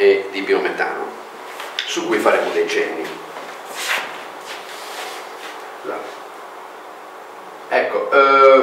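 A middle-aged man speaks calmly in a room with a slight echo.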